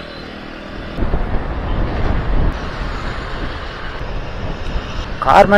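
Wind buffets and rumbles as the scooter moves along.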